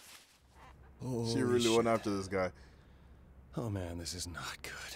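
A young man exclaims in dismay, then groans.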